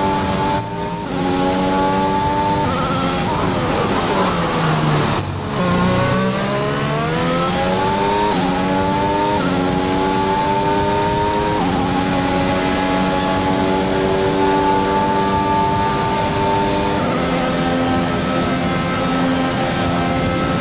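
A racing car engine screams at high revs, dropping in pitch through a braking zone and climbing again through the gears.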